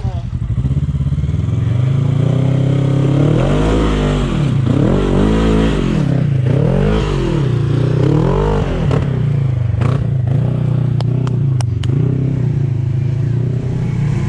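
An off-road vehicle's engine roars and revs up and down close by.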